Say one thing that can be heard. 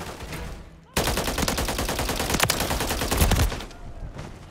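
Automatic gunfire rattles loudly and rapidly.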